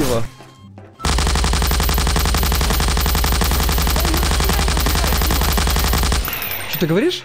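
An automatic gun fires in a long rapid burst.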